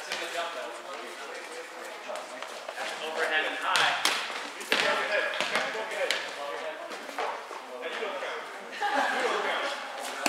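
Young people call out and chatter in a large echoing gym.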